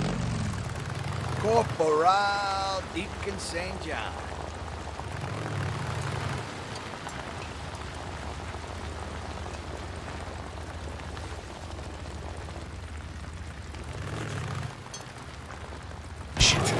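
A motorcycle engine rumbles low as the bike rolls slowly.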